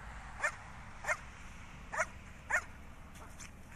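A dog barks several times in the open air.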